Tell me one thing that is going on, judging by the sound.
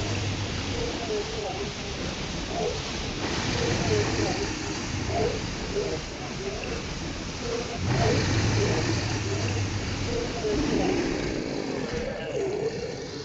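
Rain patters steadily on water outdoors.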